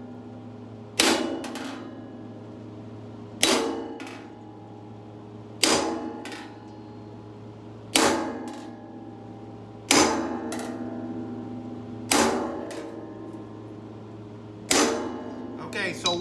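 A hammer strikes a metal tool against sheet metal, ringing sharply every couple of seconds.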